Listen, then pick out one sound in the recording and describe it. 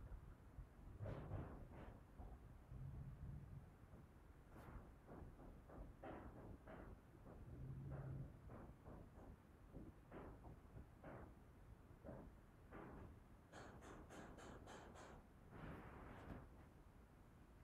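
A young woman speaks calmly and softly close by.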